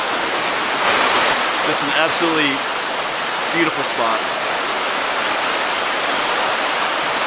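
A shallow stream rushes over rocks.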